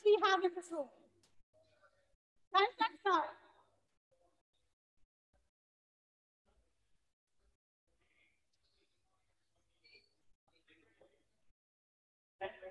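A young woman speaks into a microphone with animation, heard through an online call.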